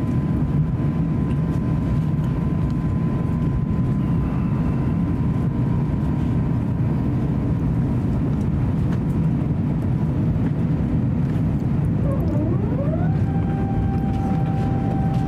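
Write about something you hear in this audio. A jet engine roars steadily, heard from inside the cabin.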